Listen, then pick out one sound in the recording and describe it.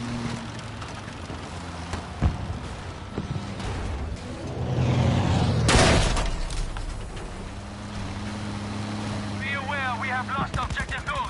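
A vehicle engine rumbles and grinds over rough ground.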